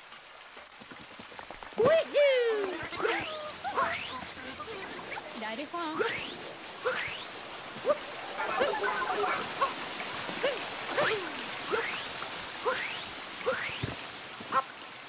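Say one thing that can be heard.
Quick cartoon footsteps patter across grass.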